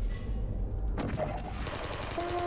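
A portal gun fires with a sharp electronic zap.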